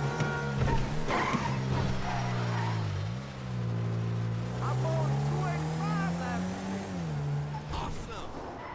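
A car engine hums steadily, dipping and rising in pitch.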